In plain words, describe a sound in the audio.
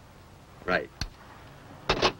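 A telephone handset clicks onto its hook.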